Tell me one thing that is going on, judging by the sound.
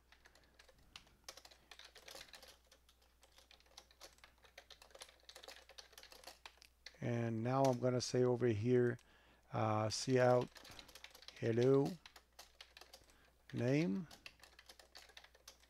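Keys clatter on a keyboard as someone types.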